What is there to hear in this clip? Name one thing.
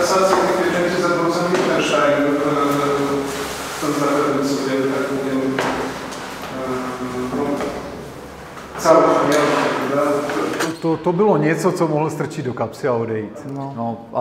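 A man speaks with animation through a microphone and loudspeakers in a large room.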